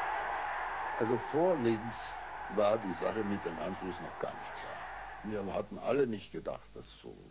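A man gives a speech, shouting through a loudspeaker.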